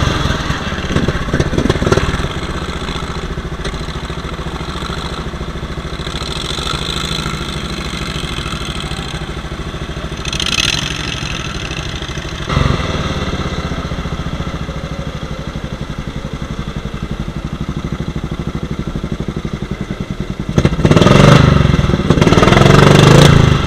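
A small engine putters steadily close by.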